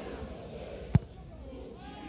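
A ball is kicked hard with a thud.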